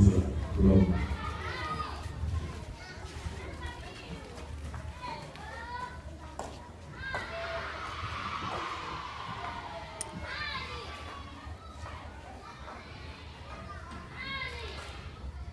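Women murmur and talk quietly.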